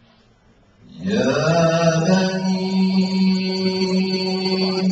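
A second man chants slowly into a microphone, close and amplified.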